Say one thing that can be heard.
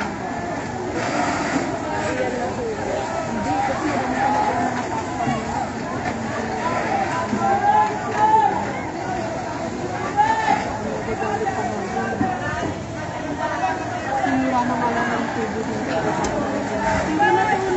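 A crowd of men and women shouts and talks excitedly nearby, outdoors.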